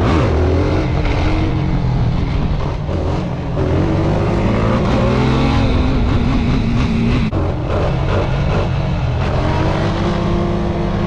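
A quad bike engine revs loudly up close, rising and falling in pitch.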